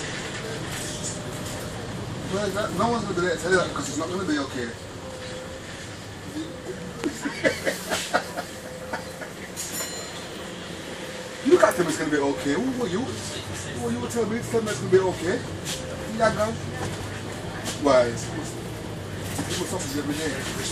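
A bus engine rumbles steadily as it drives along a wet road.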